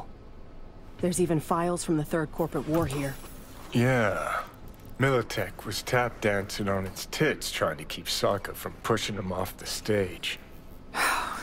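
A man speaks in a relaxed, gravelly voice.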